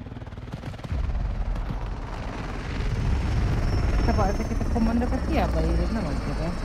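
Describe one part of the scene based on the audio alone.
A helicopter's rotor thumps and roars overhead.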